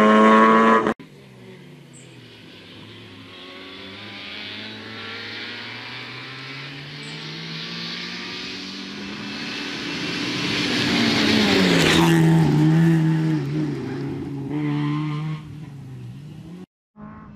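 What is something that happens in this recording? A rally car engine roars, approaching from the distance and passing close by.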